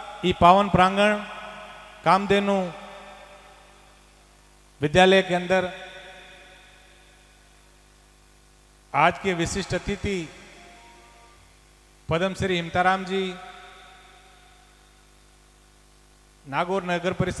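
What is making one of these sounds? A man sings loudly through a microphone, in bursts of phrases, with echo trailing after each.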